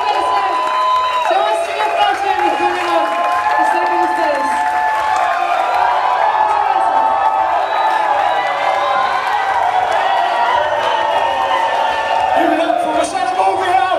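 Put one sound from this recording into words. A woman sings into a microphone over loudspeakers.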